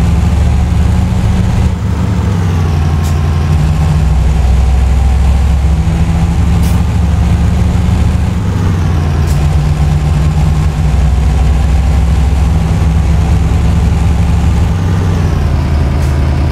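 A heavy truck engine drones steadily, rising and dropping in pitch as it changes gear.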